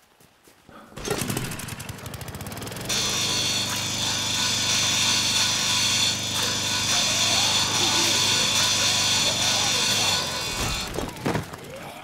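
A small petrol lawnmower engine runs.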